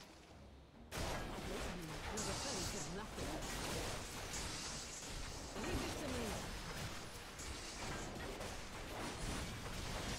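Magic blasts crackle and boom in a fight.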